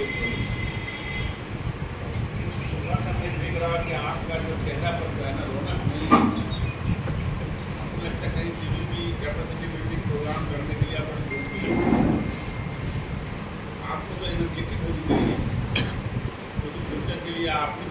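A middle-aged man speaks steadily into a microphone in an echoing room.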